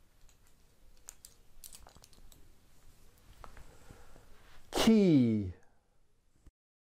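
Keys jingle on a ring.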